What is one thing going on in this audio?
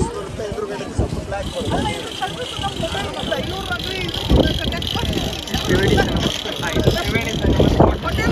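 A large crowd of men and women chatters all around, close by.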